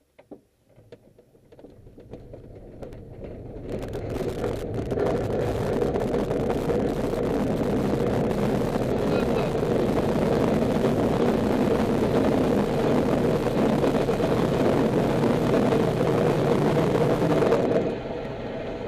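A glider rumbles along over hard, dry ground, getting louder as it speeds up.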